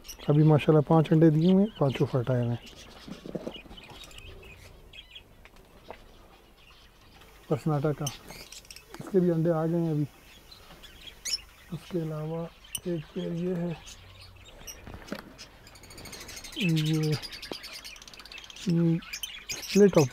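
Small birds chirp.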